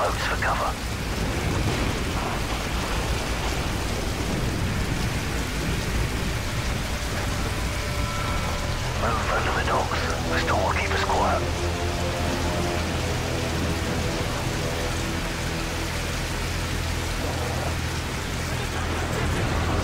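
Heavy rain falls on water.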